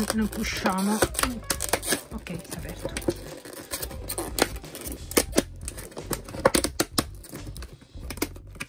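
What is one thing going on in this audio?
Stiff plastic packaging crinkles and clicks.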